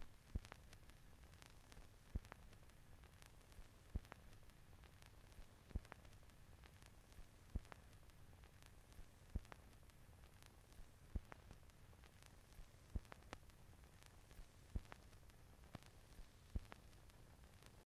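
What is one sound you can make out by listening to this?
A vinyl record crackles softly and clicks once with every turn.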